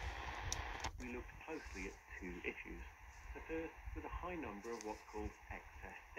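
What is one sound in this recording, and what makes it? A man's voice talks through a small radio speaker.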